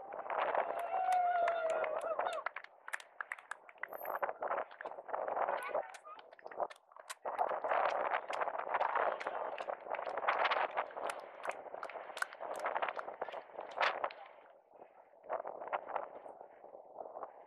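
Wind rushes and buffets over the microphone.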